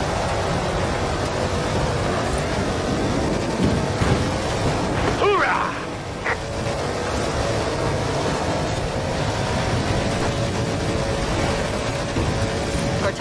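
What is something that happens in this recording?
An off-road vehicle's engine roars steadily as it drives.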